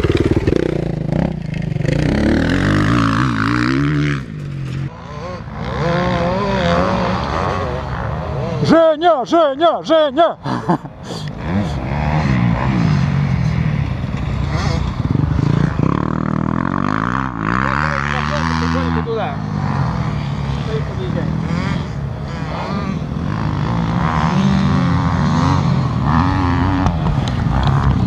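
A four-stroke dirt bike engine revs up and down.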